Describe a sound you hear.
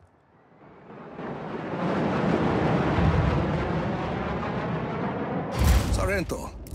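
A large aircraft roars loudly overhead and fades.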